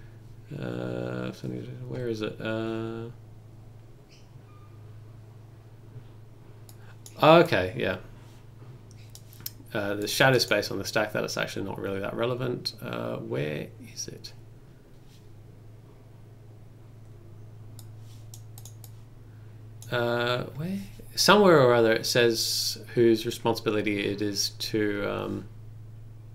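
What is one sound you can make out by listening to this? A young man talks calmly and explains, close to a microphone, in bursts with pauses.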